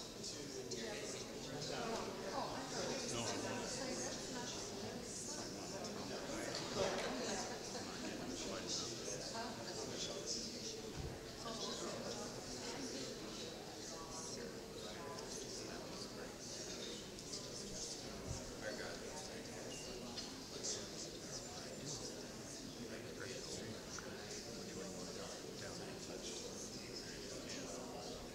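A crowd of people chatter softly all around in a large echoing hall.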